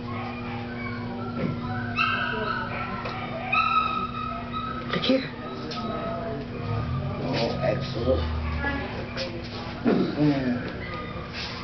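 A dog's claws click on a hard floor as it walks.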